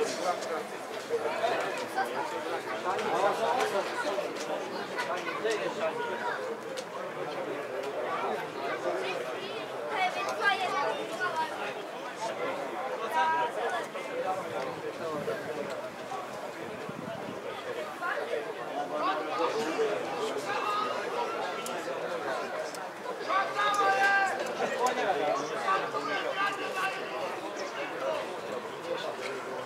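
Men talk and call out across an open outdoor field.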